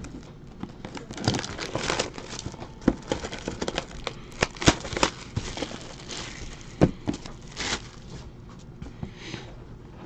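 A cardboard box is tapped and handled with soft knocks.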